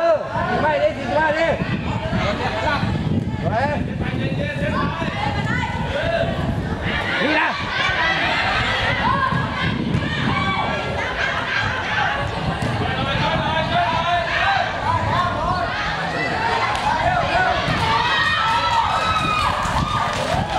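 A crowd of children shouts and cheers loudly outdoors.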